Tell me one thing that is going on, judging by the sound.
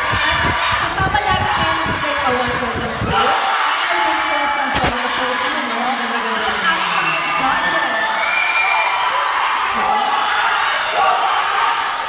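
A young woman speaks into a microphone over loudspeakers.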